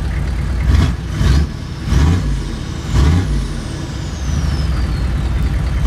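A large pickup truck engine idles with a deep rumble close by.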